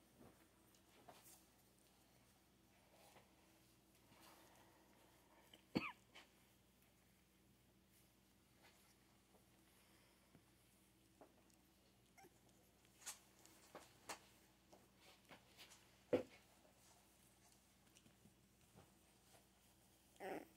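Newborn puppies squeak and whimper softly close by.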